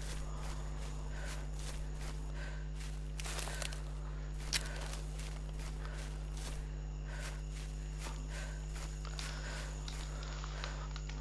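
Footsteps crunch steadily over a forest floor.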